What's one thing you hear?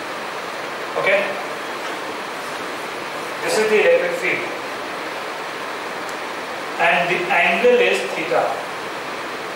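A man speaks through a microphone in short, calm phrases with pauses.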